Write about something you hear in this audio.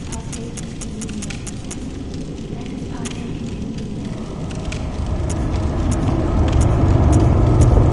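Menu clicks tick quickly in a rapid series.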